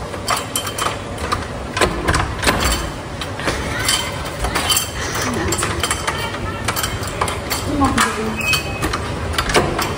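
A door handle rattles and clicks.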